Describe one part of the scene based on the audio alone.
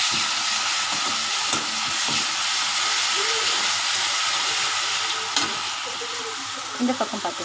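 Onions sizzle loudly in hot oil.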